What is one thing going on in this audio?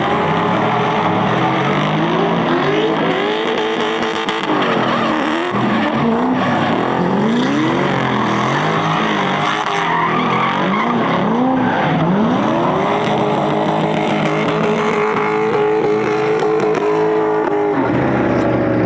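Car engines rev hard and roar, rising and falling in pitch.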